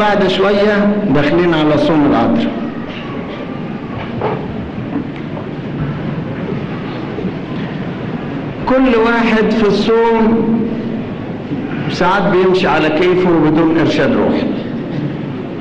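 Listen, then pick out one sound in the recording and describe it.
An elderly man speaks slowly and solemnly into a microphone, with pauses between phrases.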